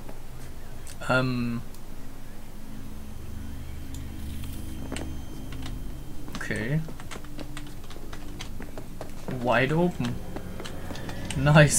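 A young man speaks briefly and casually into a close microphone.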